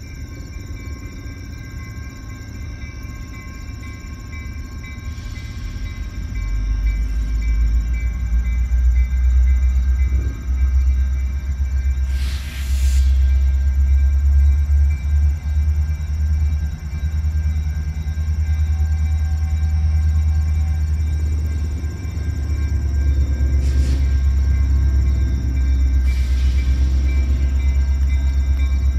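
A train engine rumbles as it approaches, growing louder.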